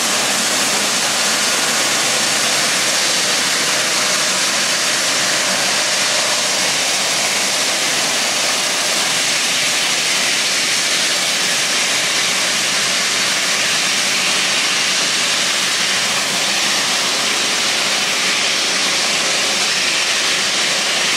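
A jet airliner's engines whine and roar steadily close by as it taxis.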